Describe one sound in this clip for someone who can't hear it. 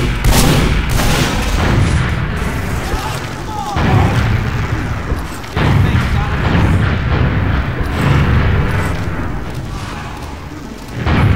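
A heavy machine gun fires in loud, rapid bursts.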